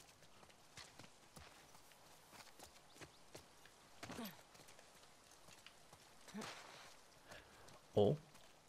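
Footsteps tread steadily over hard ground.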